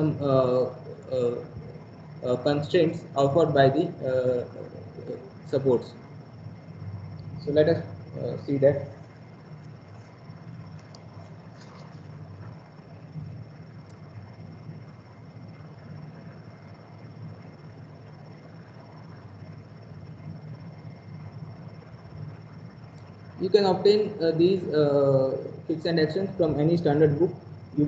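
A man speaks calmly over an online call, explaining.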